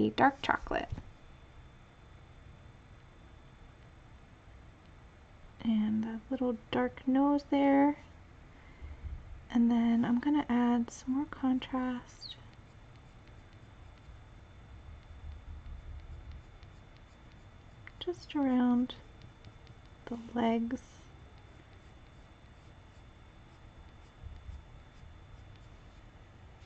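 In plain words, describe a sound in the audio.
A coloured pencil scratches softly on paper.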